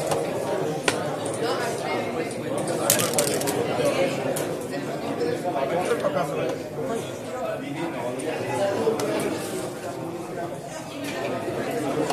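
Game pieces click as they are moved on a board.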